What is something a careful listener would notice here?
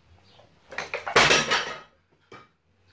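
Dumbbells clank as they are set down.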